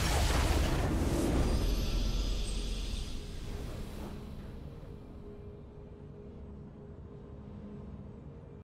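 A triumphant victory chime rings out and slowly fades.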